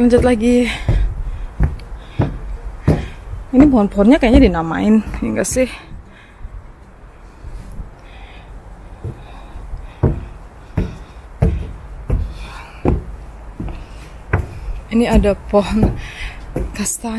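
Footsteps thud steadily on wooden steps close by.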